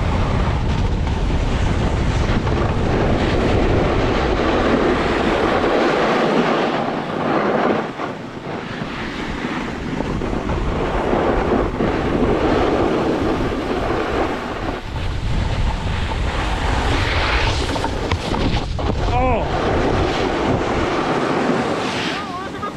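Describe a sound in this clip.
A snowboard scrapes and hisses over packed snow close by.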